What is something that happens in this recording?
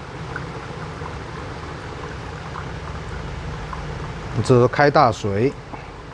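Water pours gently from a kettle.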